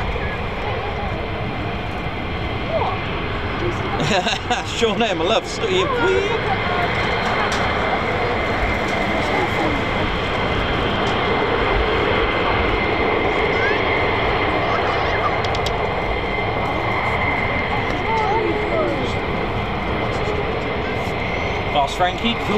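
Jet engines roar and whine steadily close by, outdoors.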